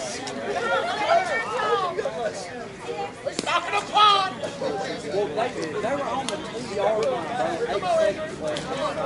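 Men talk and call out nearby outdoors.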